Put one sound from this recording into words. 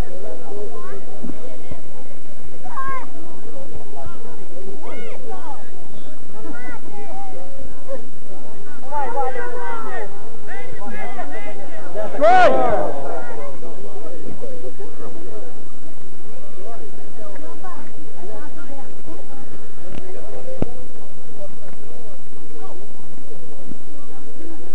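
Players shout to each other from afar across an open field outdoors.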